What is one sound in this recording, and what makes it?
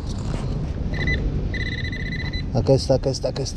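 A metal detector gives short electronic beeps.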